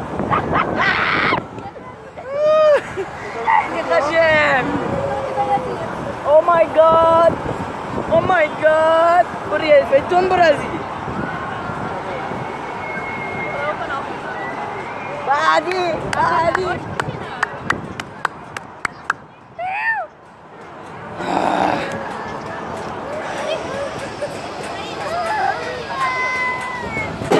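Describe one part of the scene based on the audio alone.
A young man talks excitedly close by.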